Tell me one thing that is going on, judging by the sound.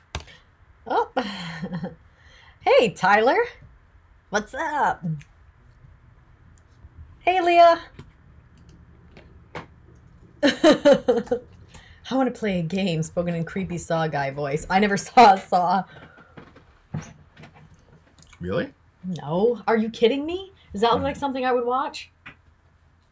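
A woman talks and laughs with animation close to a microphone.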